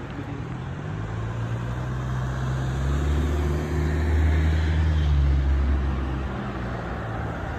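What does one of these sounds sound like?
A V12 luxury coupe drives past.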